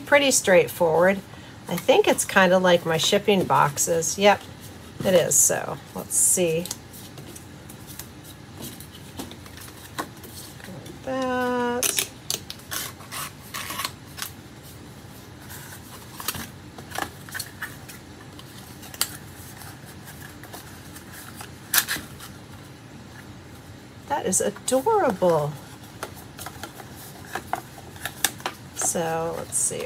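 Card stock rustles and creases as hands fold a small box.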